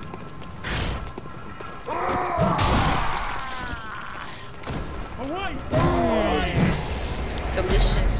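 Blades swing and clash in a fight.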